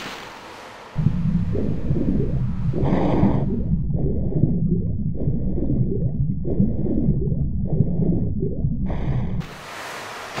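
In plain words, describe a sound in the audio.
Water rumbles and churns underwater.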